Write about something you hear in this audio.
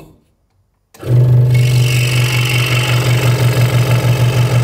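A scroll saw whirs loudly and steadily as it cuts through wood.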